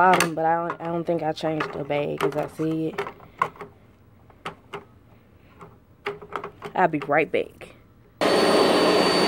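Plastic parts of a vacuum cleaner click and knock as a hand works at them.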